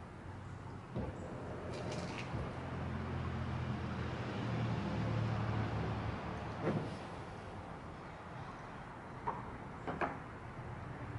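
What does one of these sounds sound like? Footsteps thump on a hollow boat deck.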